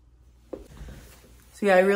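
A young woman speaks up close.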